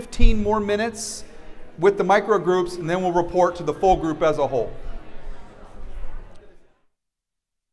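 A man speaks clearly to a group through a microphone.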